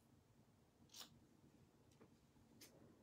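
Scissors snip a ribbon.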